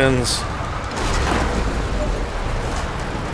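Wood creaks and crashes down with a heavy rumble.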